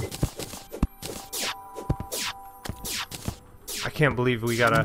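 Game magic whooshes sweep down several times.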